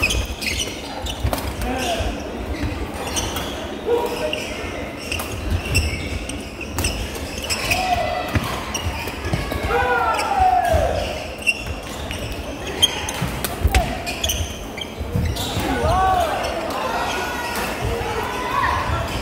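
A crowd of people chatters in the background of a large echoing hall.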